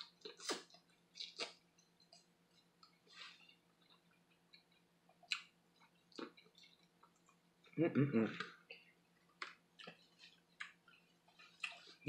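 A woman chews and slurps crab meat close up.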